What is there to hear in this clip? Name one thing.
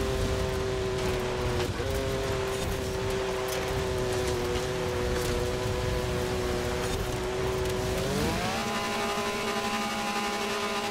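An engine hums steadily, then revs higher.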